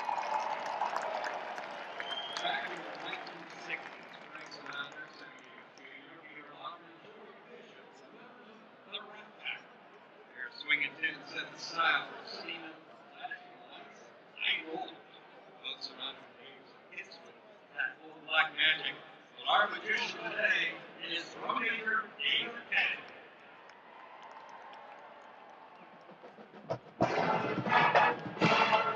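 A marching band plays loudly in a large open stadium.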